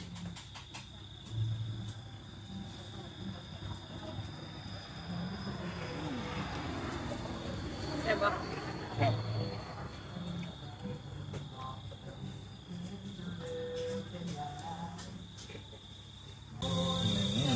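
A man slurps noodles loudly, close up.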